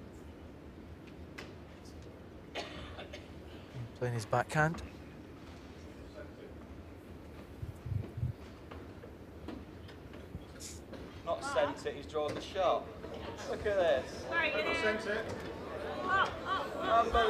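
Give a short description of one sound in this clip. A seated crowd murmurs softly in a large hall.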